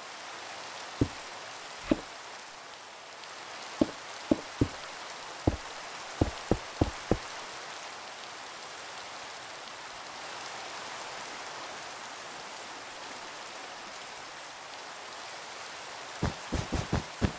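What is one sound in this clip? Stone blocks knock into place one after another.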